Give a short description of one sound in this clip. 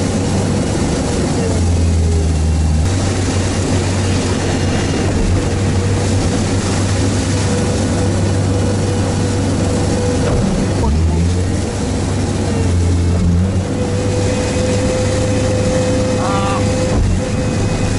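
A vehicle engine drones steadily up close.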